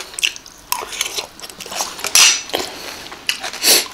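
A young woman slurps and chews food.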